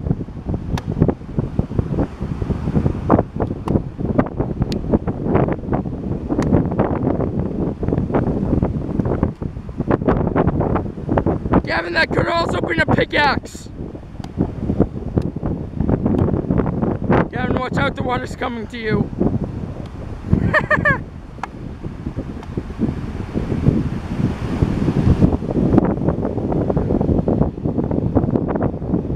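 A stick whacks against a driftwood log again and again.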